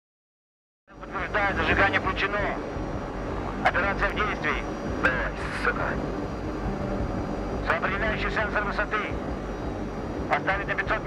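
A man speaks calmly through a radio.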